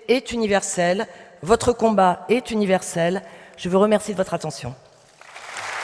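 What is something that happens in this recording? An elderly woman speaks calmly through a microphone in a large echoing hall.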